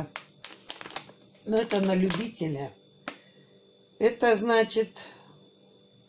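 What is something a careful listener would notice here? A plastic wrapper crinkles as hands handle it.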